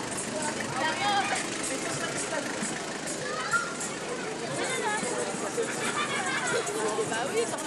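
A crowd of young girls and children chatter and call out outdoors.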